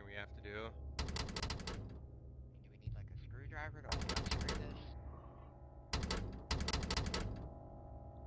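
Footsteps clatter on a hard floor.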